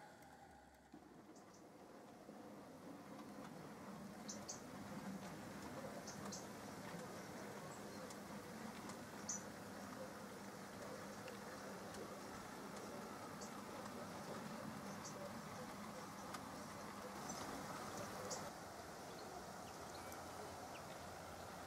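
A small model train rumbles along the track with light clicks from the rails.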